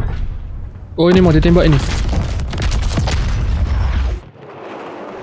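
Big guns fire with deep, rumbling booms.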